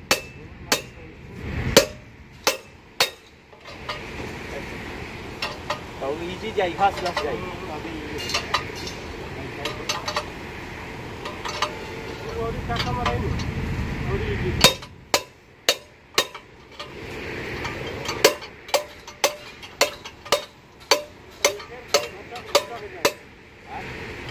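A hammer strikes a metal pipe with sharp, ringing clangs.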